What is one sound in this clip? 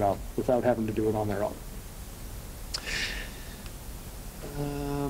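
A man speaks calmly through a microphone.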